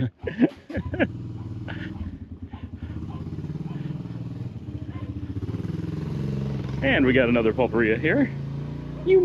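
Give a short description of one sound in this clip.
A motorcycle engine idles and then rumbles past nearby.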